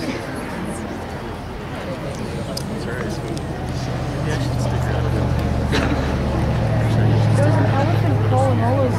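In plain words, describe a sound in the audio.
A crowd of men and women murmur and chat nearby outdoors.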